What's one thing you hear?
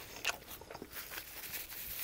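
A napkin rustles against a man's face.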